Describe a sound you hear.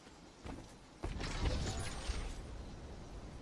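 A wooden chest bursts open with a rush and chime.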